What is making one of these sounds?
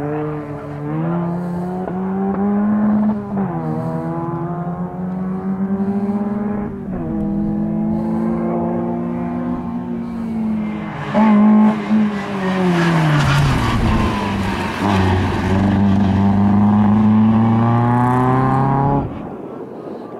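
A small car engine revs hard and shifts gears as the car speeds up.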